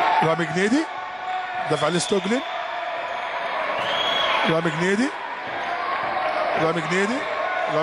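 A basketball bounces on a hard floor.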